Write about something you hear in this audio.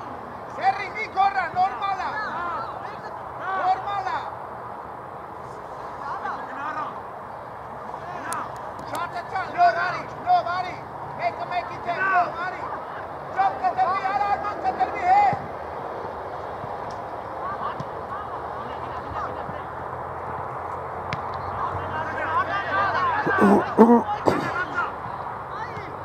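Young players shout to each other across an open outdoor field.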